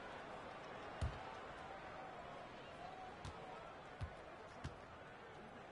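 A basketball bounces on a hardwood court with dull thumps.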